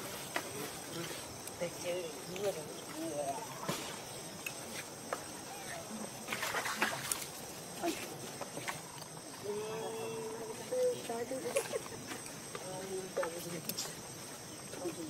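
A baby monkey squeaks and chirps softly.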